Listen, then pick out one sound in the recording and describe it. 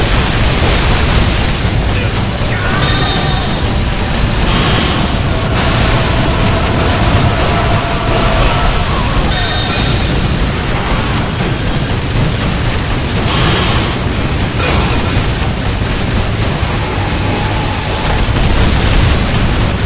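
An explosion booms and roars.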